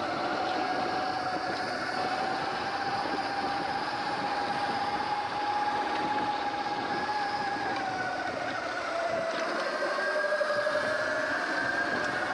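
Wind rushes past.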